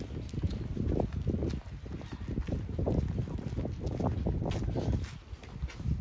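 Footsteps walk along a hard surface.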